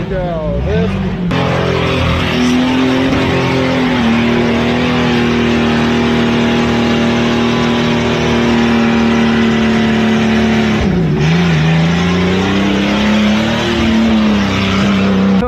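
An engine revs hard and roars steadily, dipping briefly before climbing again.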